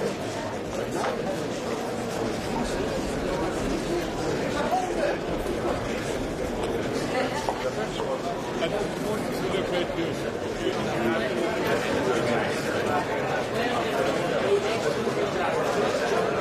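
A crowd of men and women chatter throughout in a large room.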